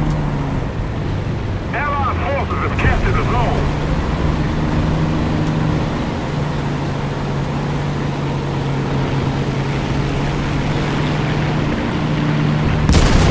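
A tank engine rumbles as a tank drives.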